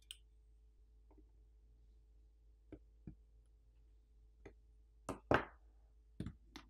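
A metal tool clicks and taps against a phone's insides.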